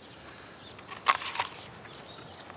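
A man bites into an apple with a crisp crunch.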